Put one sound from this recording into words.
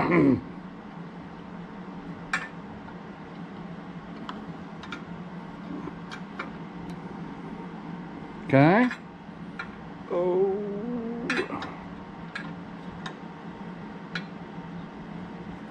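A metal marking tool clicks and taps softly against a wooden board.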